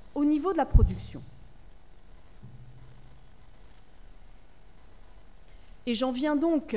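A woman speaks calmly into a microphone, in short phrases with pauses.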